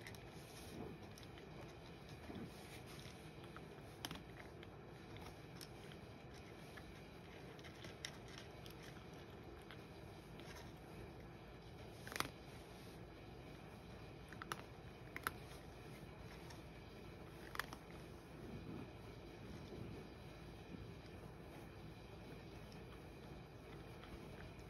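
A cat crunches dry food close by.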